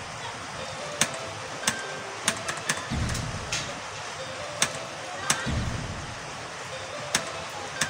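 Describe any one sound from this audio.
Keyboard keys click sharply now and then, close by.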